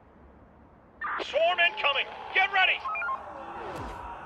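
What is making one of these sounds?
A synthetic warning sound blares in short, warbling bursts.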